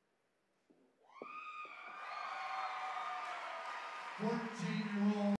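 A crowd cheers and whistles loudly in a large hall.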